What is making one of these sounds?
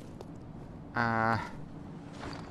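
A menu chimes with a short buzzing tone.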